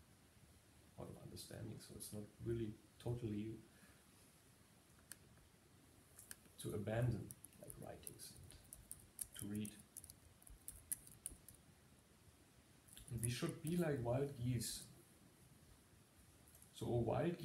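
A man speaks calmly nearby, pausing often.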